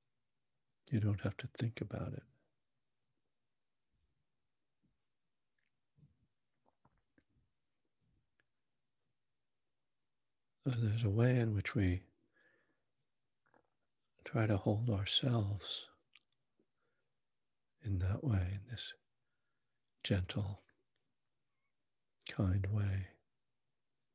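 An older man speaks calmly and closely into a microphone, in short bursts with pauses.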